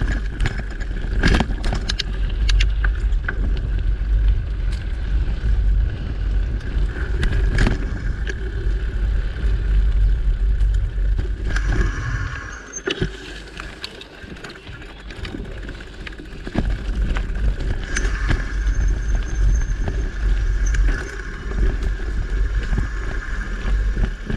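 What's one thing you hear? Tyres crunch and rattle over a dirt trail.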